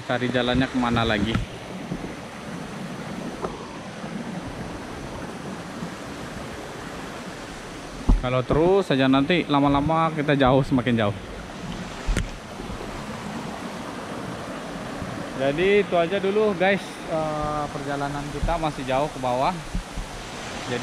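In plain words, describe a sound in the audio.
A stream trickles gently over rocks.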